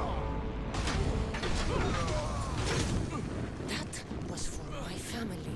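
Flames burst with loud whooshes.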